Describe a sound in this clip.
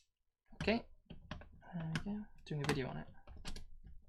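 Plastic clicks and scrapes.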